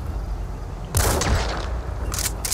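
A rifle fires a single shot.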